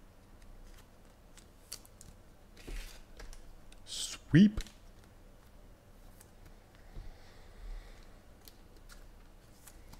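Paper crinkles softly as a card pack is handled.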